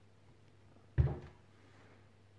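A hand bumps against a plastic pump housing with a dull thump.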